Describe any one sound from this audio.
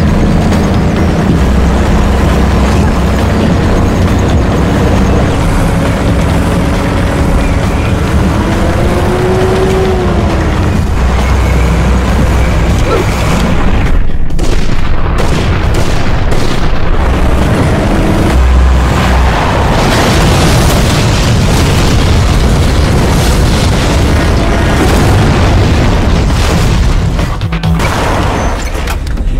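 Truck engines rumble loudly as vehicles drive.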